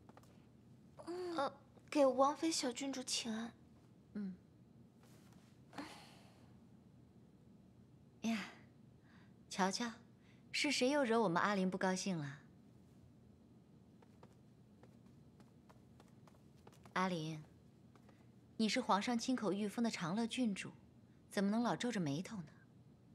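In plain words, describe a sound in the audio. A woman speaks calmly and with a smile, close by.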